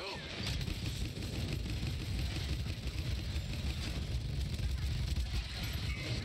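A heavy gun fires rapid bursts.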